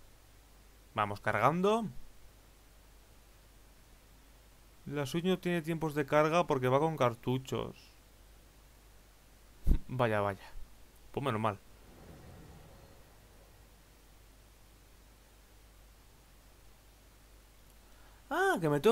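A young man talks in short bursts into a close microphone.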